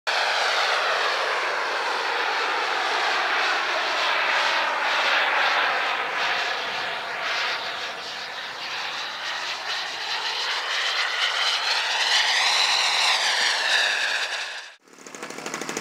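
A model plane's engine whines overhead, its pitch rising and falling as it flies.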